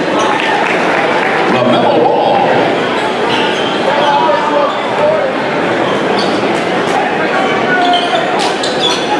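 A large crowd murmurs and cheers in an echoing gym.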